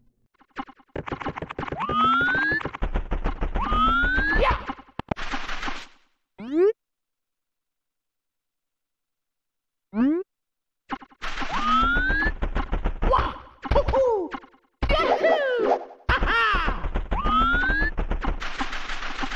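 Bouncy, rising video game tones chirp in quick bursts.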